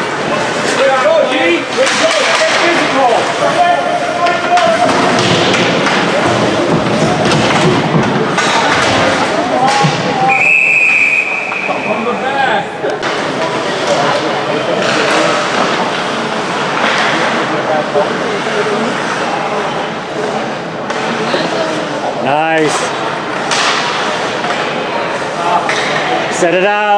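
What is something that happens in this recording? Spectators talk nearby.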